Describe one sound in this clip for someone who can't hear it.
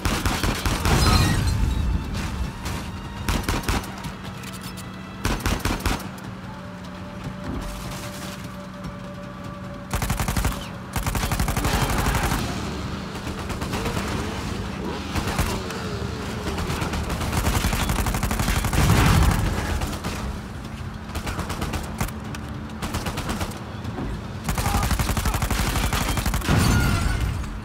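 A vehicle engine roars steadily.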